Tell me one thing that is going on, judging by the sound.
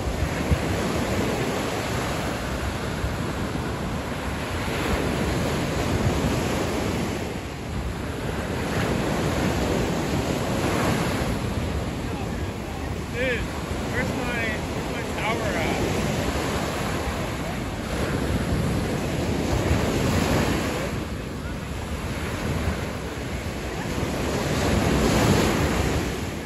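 Waves break and wash up onto the shore with a steady rushing roar that swells and falls.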